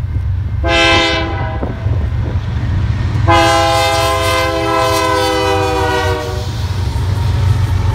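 A locomotive engine roars loudly as it passes close by.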